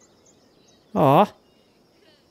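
A man shouts out briefly.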